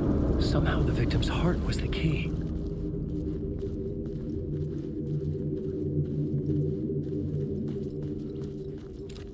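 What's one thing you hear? Footsteps crunch slowly over gravel.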